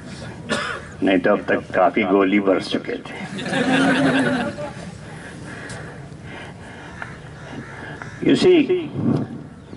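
An elderly man speaks with animation through a microphone and loudspeakers outdoors.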